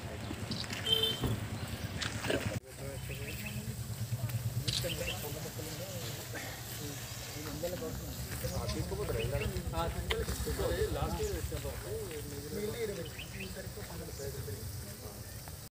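Men talk among a small crowd outdoors.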